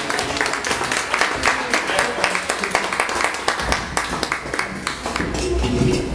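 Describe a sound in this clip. An audience claps rhythmically along, close by.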